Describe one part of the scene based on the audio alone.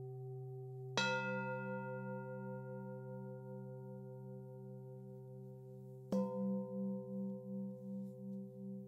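A singing bowl is struck and rings out.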